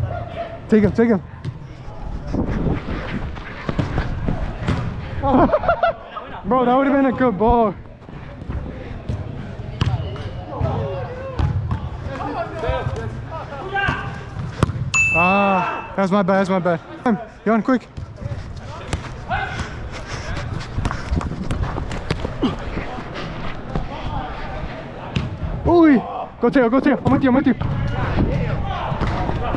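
A soccer ball is kicked with a thump.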